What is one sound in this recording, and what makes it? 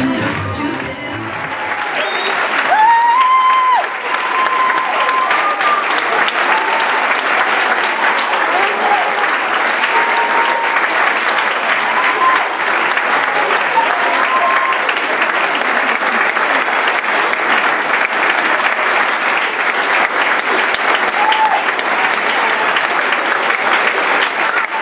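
A large crowd claps and applauds loudly in an echoing hall.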